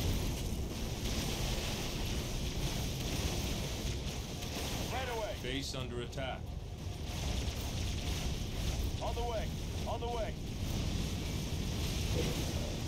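A low, steady rumble of battle noise runs throughout.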